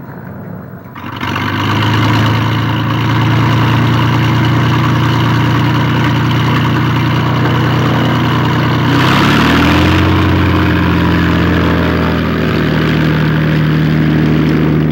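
A propeller plane's engine roars loudly and steadily, then revs higher.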